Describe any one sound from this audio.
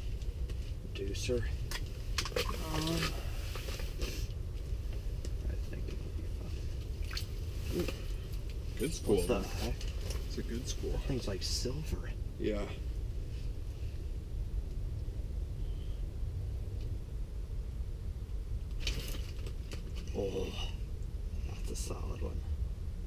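Young men talk casually close by.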